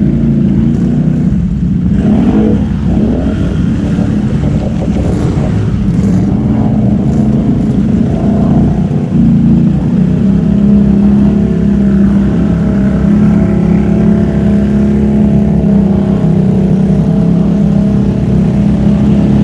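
A quad bike engine revs loudly close by.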